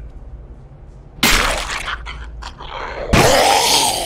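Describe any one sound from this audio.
A blunt weapon strikes with heavy thuds.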